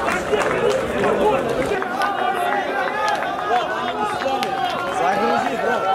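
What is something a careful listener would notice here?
A crowd of men chants and cheers loudly outdoors.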